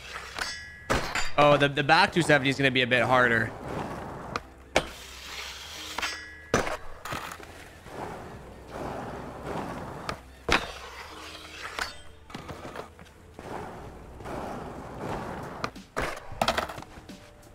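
A skateboard snaps and clacks as it pops and lands.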